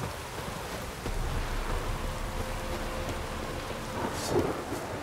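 A man speaks in a calm, low voice.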